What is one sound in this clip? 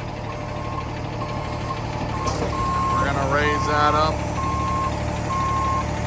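An engine hums steadily and low.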